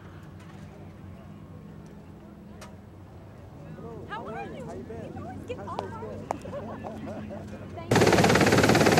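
A helicopter drones far overhead.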